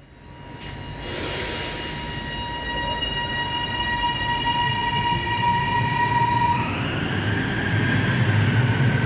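An electric train's motor whines and rises in pitch as the train pulls away.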